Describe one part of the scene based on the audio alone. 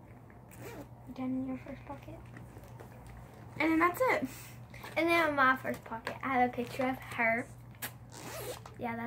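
Another young girl talks calmly close by.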